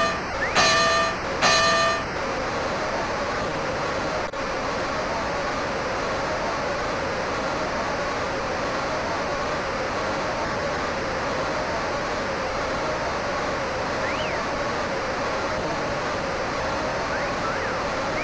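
A large crowd murmurs steadily in the background.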